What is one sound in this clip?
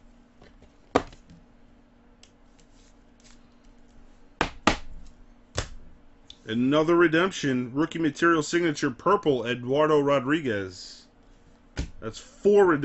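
A plastic card case taps and clicks as it is handled.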